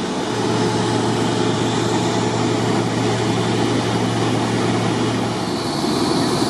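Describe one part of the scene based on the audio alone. A machine engine rumbles steadily.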